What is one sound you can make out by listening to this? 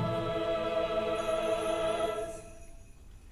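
A choir sings a held final chord in a large hall.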